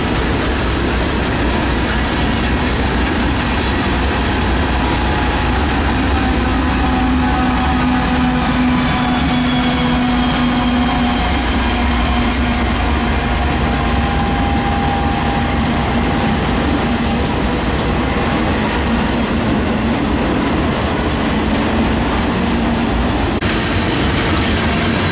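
A freight train rumbles and clatters past close by.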